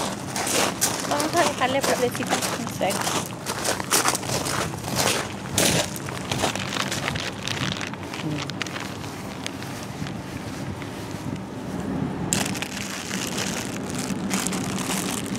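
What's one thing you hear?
Plastic flower wrapping crinkles and rustles.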